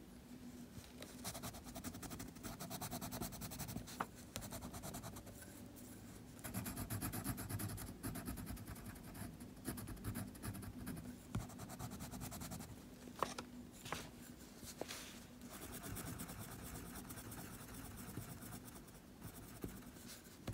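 A crayon scratches and rubs on paper.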